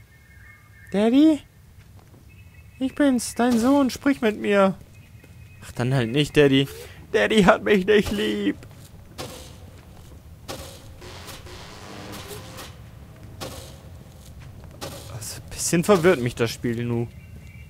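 A young man talks with animation into a headset microphone, close by.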